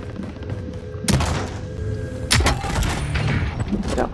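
A metal door creaks open.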